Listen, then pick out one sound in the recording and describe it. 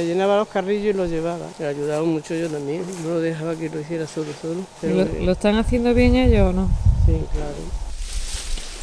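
An elderly woman talks calmly, close by.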